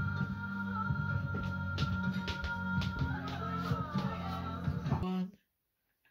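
A young person sings loudly close by.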